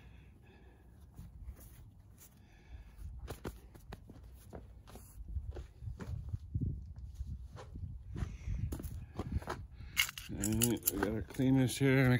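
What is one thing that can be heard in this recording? A paper towel rustles and crinkles in hands.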